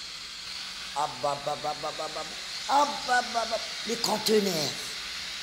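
A woman chants in a low voice close by.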